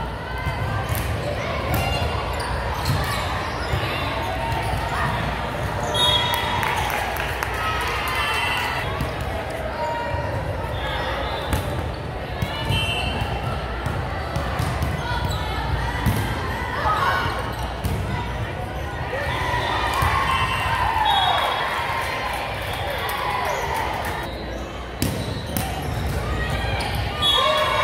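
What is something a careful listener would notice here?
Shoes squeak sharply on a hardwood court.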